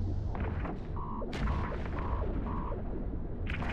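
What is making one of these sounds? A warning alarm beeps several times in quick succession.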